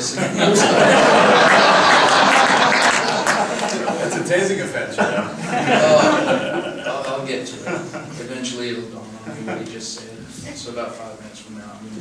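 A man speaks into a microphone at a lectern.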